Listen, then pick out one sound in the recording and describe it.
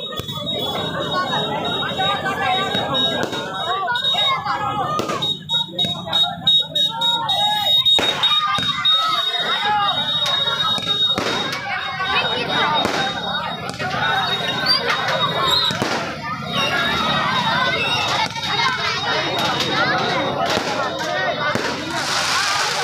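A crowd of people chatters and shouts nearby.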